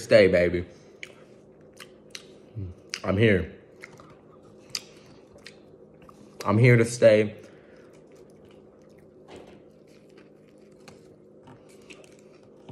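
A young man bites into and chews a crunchy wrap.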